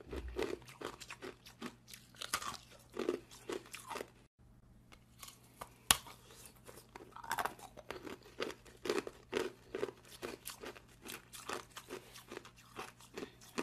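Ice crackles and crunches against teeth close to a microphone.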